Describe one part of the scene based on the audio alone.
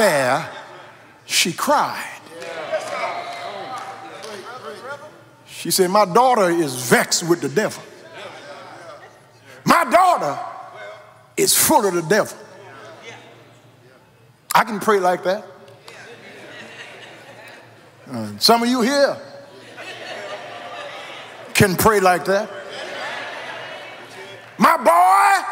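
An older man preaches with emphasis into a microphone, in bursts with pauses, in a large reverberant hall.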